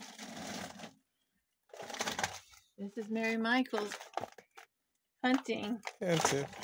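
A plastic bag rustles and crinkles close by.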